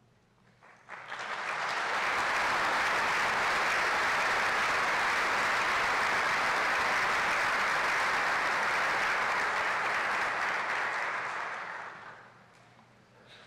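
A crowd applauds steadily, then the applause fades away.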